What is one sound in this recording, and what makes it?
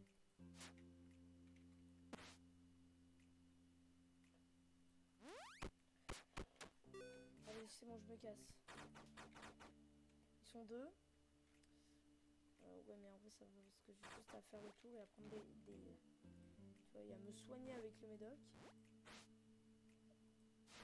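Chiptune video game music plays steadily.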